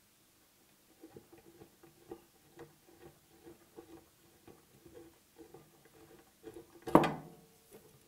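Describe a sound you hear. A hex key ratchets with quick metal clicks.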